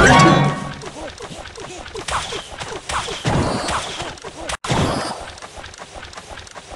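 Game sound effects chime and clash.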